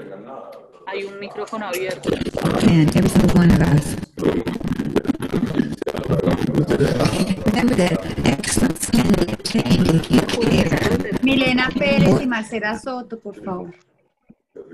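An elderly woman speaks calmly, heard through a small loudspeaker.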